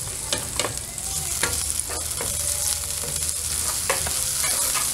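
A spatula scrapes and taps against a frying pan.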